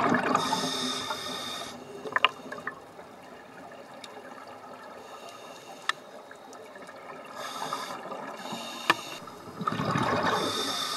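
A scuba diver breathes out through a regulator, releasing bursts of bubbling, hissing air underwater.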